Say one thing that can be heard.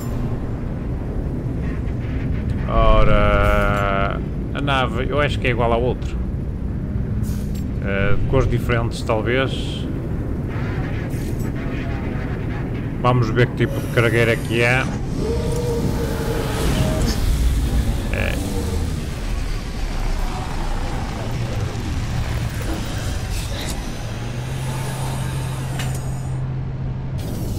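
A spaceship engine hums steadily.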